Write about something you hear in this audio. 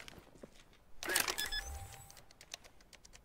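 Electronic keypad buttons beep in quick succession.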